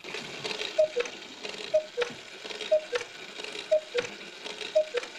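A cuckoo clock calls in two falling notes, again and again.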